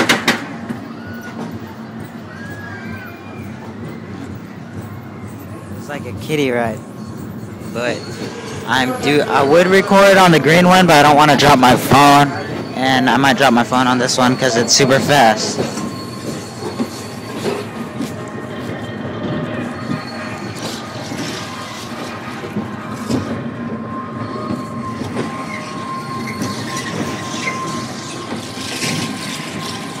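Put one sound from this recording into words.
A small roller coaster rumbles and rattles along its track.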